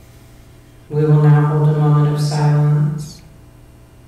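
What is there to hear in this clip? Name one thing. A man sings a short, sustained phrase close to a microphone.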